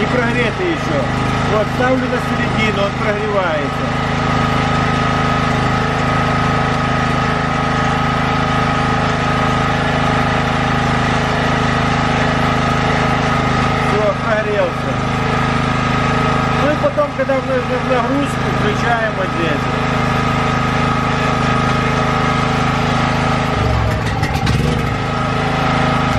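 A generator engine runs with a steady drone.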